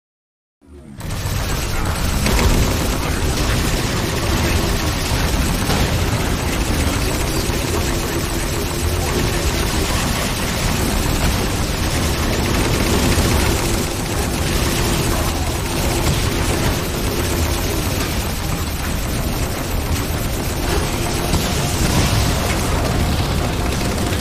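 A hovering vehicle's engine hums steadily.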